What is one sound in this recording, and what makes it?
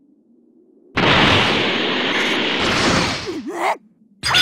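A rushing whoosh sweeps past in flight.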